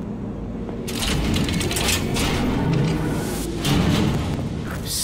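A heavy metal door rumbles open.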